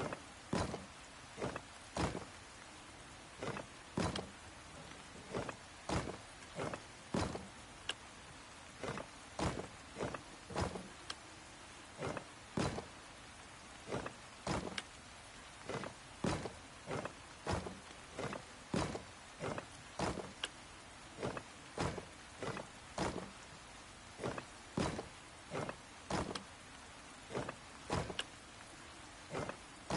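Puzzle pieces turn with short, sharp clicks, again and again.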